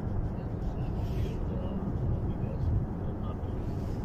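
A hand rubs against a phone microphone.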